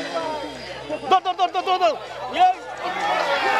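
A man chants rapidly and rhythmically.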